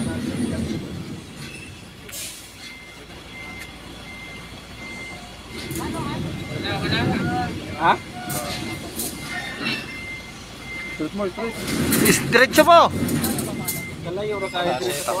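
A truck engine rumbles at a distance.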